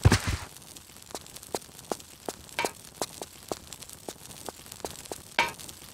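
Light footsteps tap on a stone floor.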